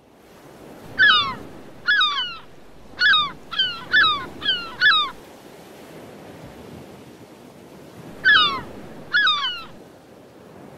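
A seagull cries out in repeated shrill calls.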